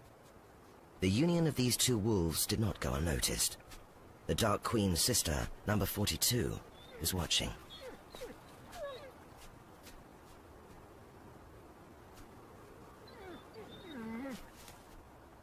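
A dog yelps and barks excitedly.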